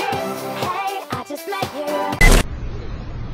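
A young man raps over music.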